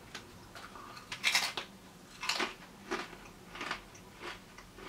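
A crisp snack crunches as a man bites and chews it close by.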